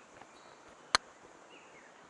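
A putter taps a golf ball with a sharp click.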